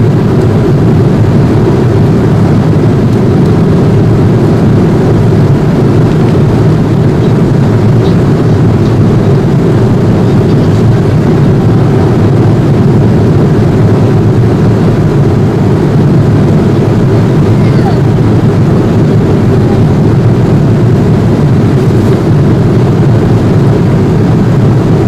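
A steady, low engine roar fills an airliner cabin in flight.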